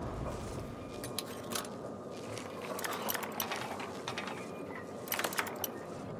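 A metal lock pick scrapes and clicks inside a lock.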